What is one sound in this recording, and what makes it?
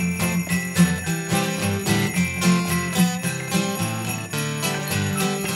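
Mallets strike a xylophone in a bright melody.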